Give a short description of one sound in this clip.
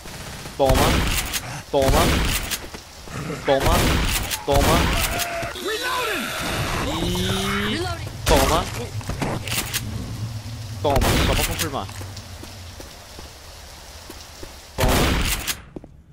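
Shotgun blasts ring out loudly, one after another.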